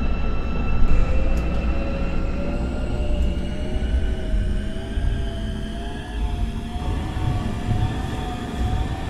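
A subway train's motor whines and rises in pitch.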